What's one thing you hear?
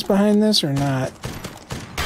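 A gun fires a shot.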